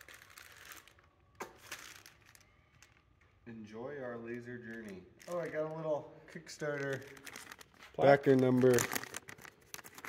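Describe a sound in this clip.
A plastic bag crinkles in hands.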